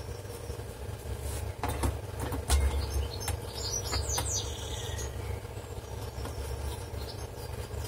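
A thin metal shield clicks and rattles as it is set down onto a circuit board.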